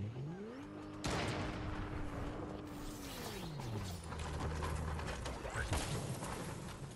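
A car crashes and tumbles with loud thuds and scraping.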